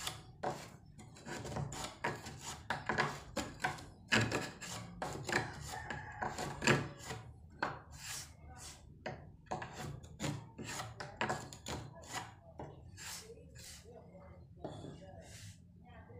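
A chisel scrapes and chips at wood in quick, repeated strokes.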